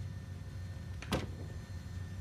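Cabinet doors bang shut.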